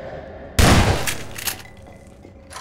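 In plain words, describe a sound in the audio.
A shotgun is pumped with sharp metallic clacks.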